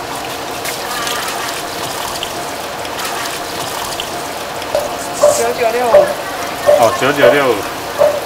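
Tap water runs steadily into a metal sink.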